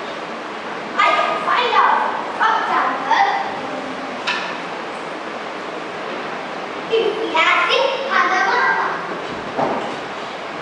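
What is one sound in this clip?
A young girl speaks loudly, with echo, in a large hall.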